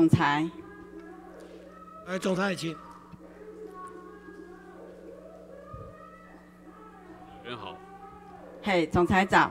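A middle-aged woman speaks steadily into a microphone in a large room, with a slight echo.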